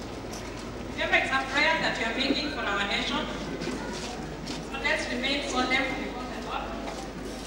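A woman sings loudly through a loudspeaker.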